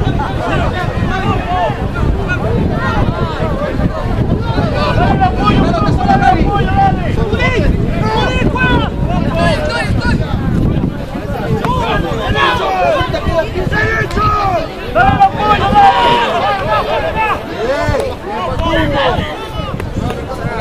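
Players shout and call to each other across an open field.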